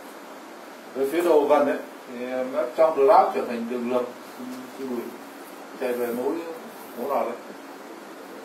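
A man speaks in a lecturing tone.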